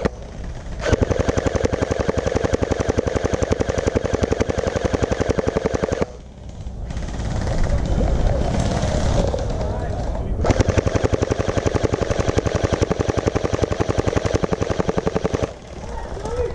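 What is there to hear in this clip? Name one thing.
An airsoft gun fires in rapid, rattling bursts close by.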